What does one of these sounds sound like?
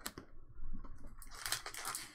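A foil card pack crinkles.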